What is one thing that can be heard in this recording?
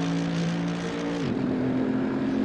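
A racing car engine drops in pitch as a gear changes up.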